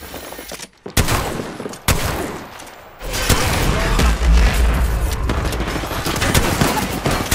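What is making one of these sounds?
Rapid gunshots fire in loud bursts.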